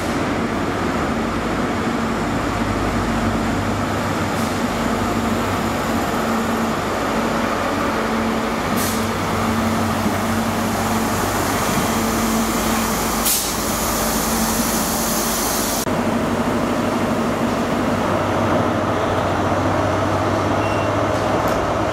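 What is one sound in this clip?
A diesel train's engines drone loudly as the train pulls into the platform.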